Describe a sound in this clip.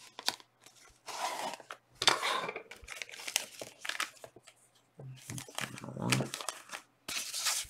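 Foil packets crinkle and rustle.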